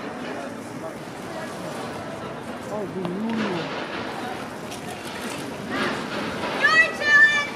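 Young women chatter and call out nearby in the open air.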